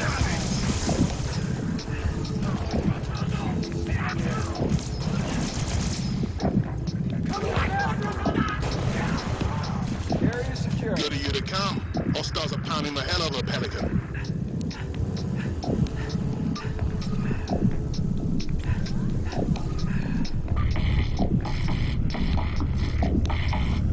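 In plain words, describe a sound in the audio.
Futuristic guns fire in rapid, crackling bursts.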